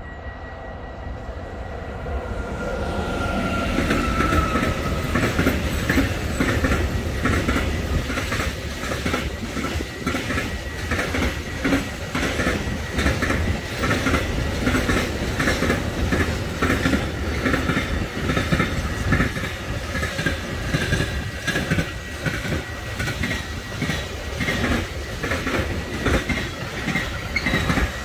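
A long freight train approaches and rumbles past nearby.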